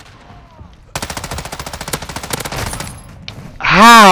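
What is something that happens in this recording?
A rifle fires rapid full-auto bursts.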